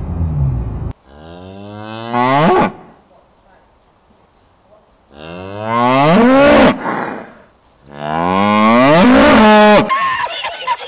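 A cow moos loudly and repeatedly up close.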